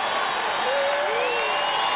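An electric guitar is played.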